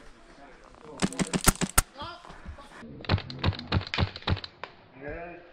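An airsoft gun fires quick bursts of sharp shots.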